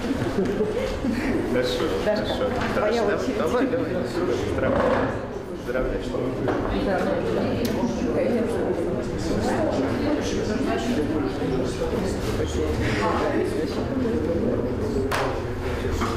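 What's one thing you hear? A crowd of people chatter throughout in an echoing room.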